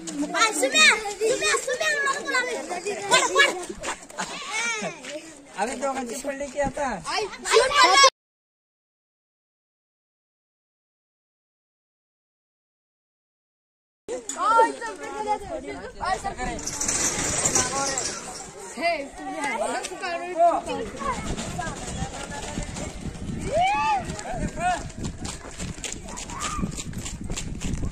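Children talk and shout excitedly nearby, outdoors.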